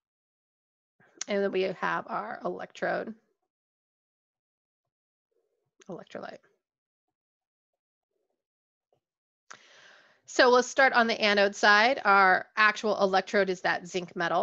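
A woman speaks calmly into a microphone, explaining, with pauses.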